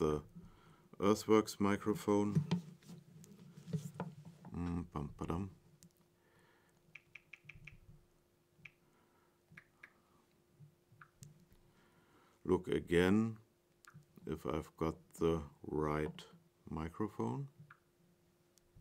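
A middle-aged man speaks calmly into a nearby microphone.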